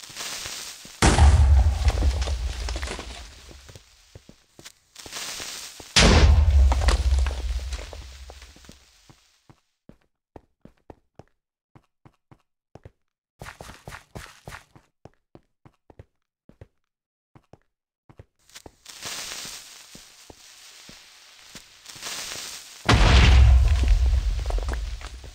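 Explosions boom and rumble away, one after another.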